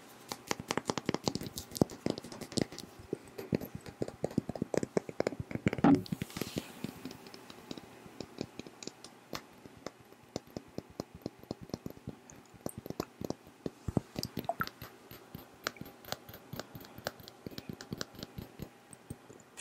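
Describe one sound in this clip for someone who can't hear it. Fingernails tap and click on a glass bottle close to a microphone.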